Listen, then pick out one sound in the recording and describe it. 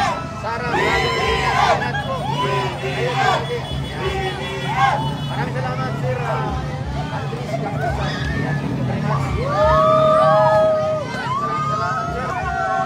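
A large crowd cheers and shouts excitedly outdoors.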